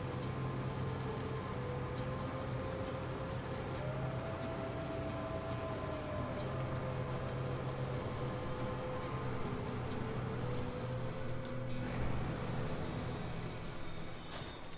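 Tyres crunch over snow and rocks.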